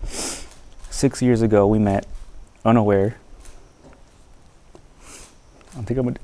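A young man reads out vows slowly, close by.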